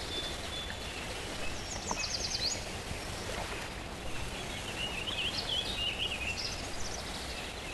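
Gentle waves lap against a sandy shore.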